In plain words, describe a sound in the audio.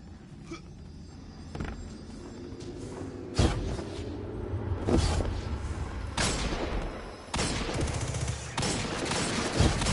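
Footsteps run quickly across a hard stone floor.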